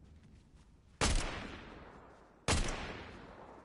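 Gunshots ring out loudly and echo away.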